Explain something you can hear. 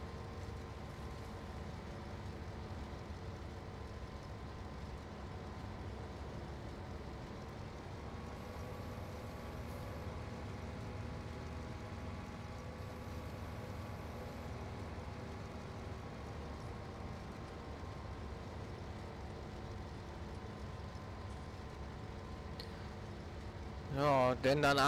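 A combine harvester engine hums steadily while cutting grain.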